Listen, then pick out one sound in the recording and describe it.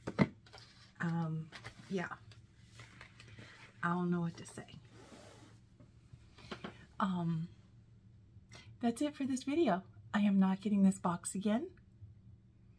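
A woman speaks calmly and warmly, close to a microphone.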